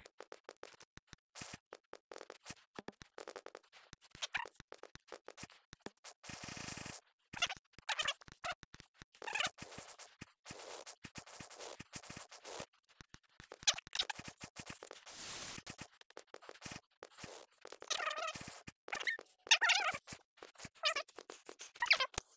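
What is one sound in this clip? Quick soft thuds and taps sound as hands grab and pull up on surfaces while climbing.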